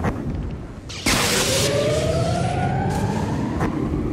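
Electric lightning crackles and buzzes loudly.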